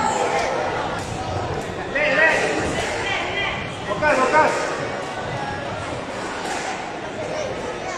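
A squash ball smacks against the walls of an echoing court.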